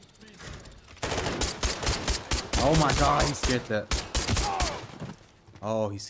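Gunshots fire loudly in quick bursts.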